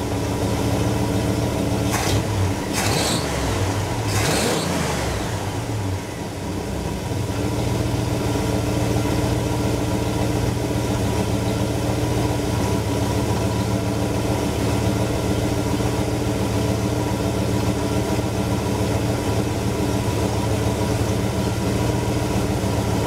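A car engine idles with a steady, rumbling hum.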